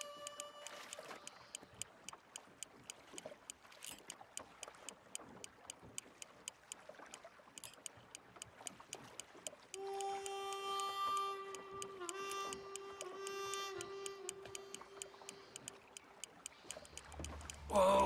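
A fishing reel ticks with rapid, steady clicks.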